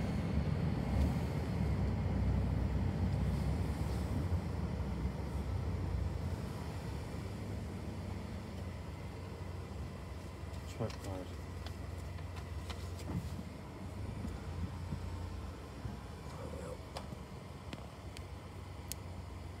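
A car engine rumbles low and steady, heard from inside the car.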